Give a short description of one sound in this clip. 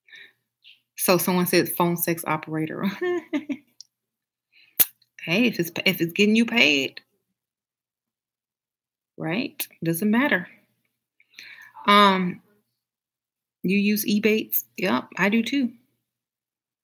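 A woman speaks calmly and thoughtfully, close to a microphone, with pauses.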